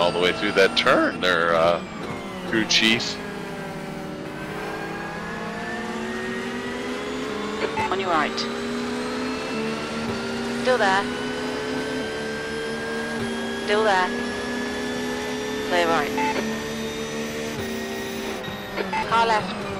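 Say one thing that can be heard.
A racing car engine drones steadily, rising in pitch as it speeds up.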